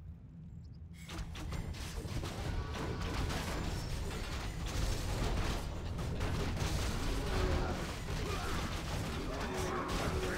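Weapons clash and spells burst in a game battle.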